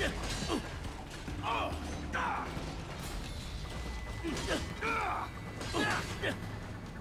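Metal blades clash and ring in quick strikes.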